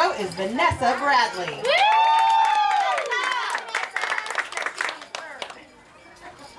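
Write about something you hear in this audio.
A crowd applauds and claps.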